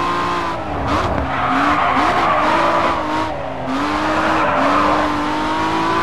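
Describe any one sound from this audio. Tyres screech as the car drifts through a bend.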